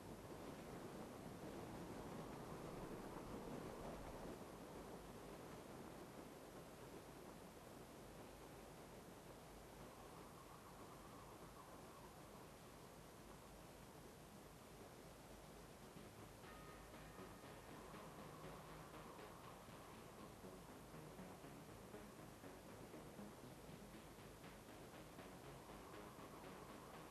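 Wind rushes steadily past a car drifting under a parachute.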